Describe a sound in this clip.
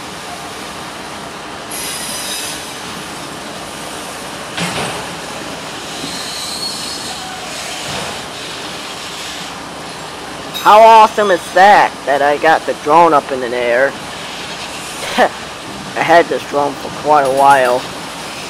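A diesel locomotive idles with a low steady hum.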